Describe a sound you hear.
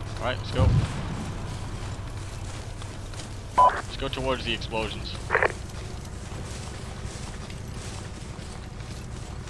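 Footsteps crunch on dry grass and earth.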